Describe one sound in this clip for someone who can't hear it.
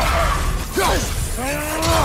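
Fire bursts with a loud whoosh.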